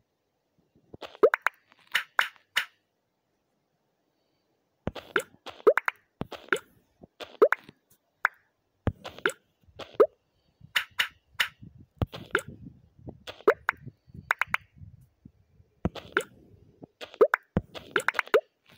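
Small tiles click and pop in quick bursts as they stack.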